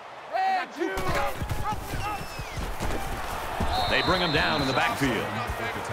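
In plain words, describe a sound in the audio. Football pads and helmets clash as players collide in a tackle.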